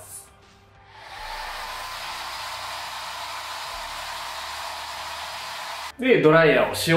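A hair dryer blows steadily close by.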